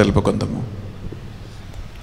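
A man speaks with animation through a microphone, then falls silent.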